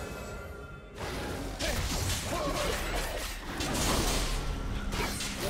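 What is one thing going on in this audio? A game's combat sound effects crash and whoosh as a fighter strikes a monster.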